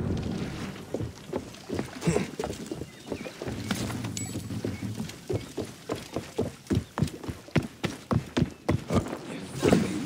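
Footsteps thud quickly across wooden planks.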